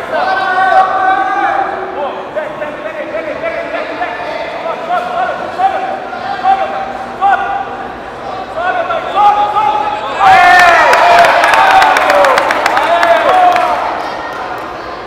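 Spectators shout encouragement in an indoor hall.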